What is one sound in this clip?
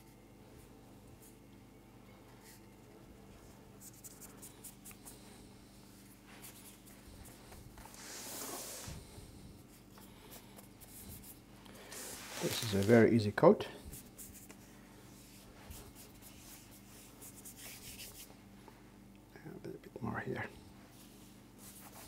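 Hands rub and smooth a soft sheet of icing.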